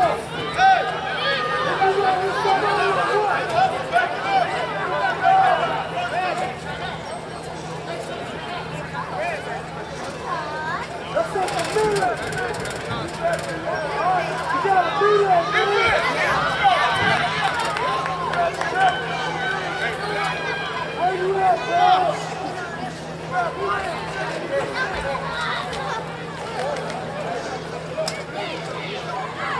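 Several people talk and call out nearby outdoors.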